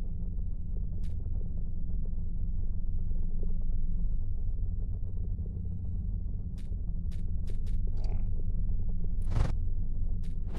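Soft clicks sound as menu options are selected.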